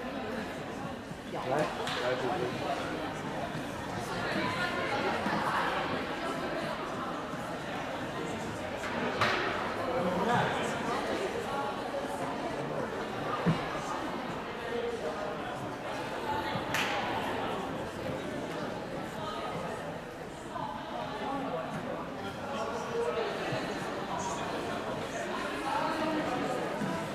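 Spectators chatter throughout a large echoing hall.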